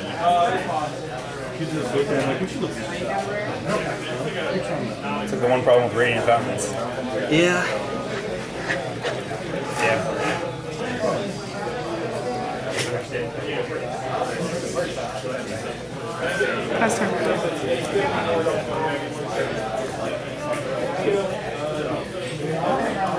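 Playing cards rustle and tap as they are shuffled and handled.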